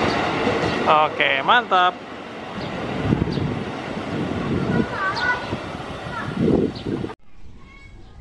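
An electric train rumbles along the tracks and moves away.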